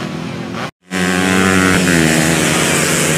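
Several dirt bikes race past with buzzing engines.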